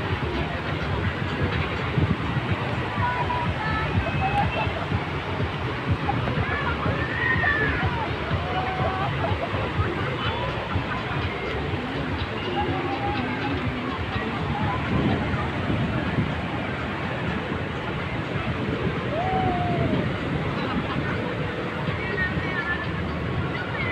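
Wind blows across the open beach.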